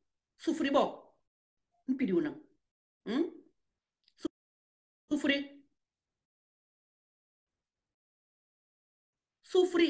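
A woman speaks calmly in short phrases, close to a phone microphone.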